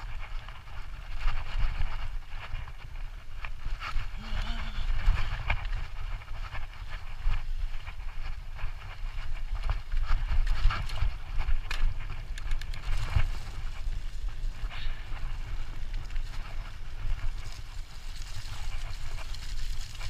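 Bicycle tyres rumble and crunch over a bumpy dirt trail.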